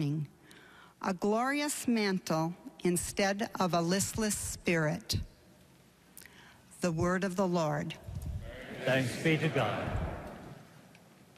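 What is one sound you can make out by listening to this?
A woman reads aloud through a microphone in a large echoing hall.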